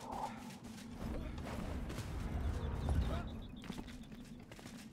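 A young man talks into a nearby microphone.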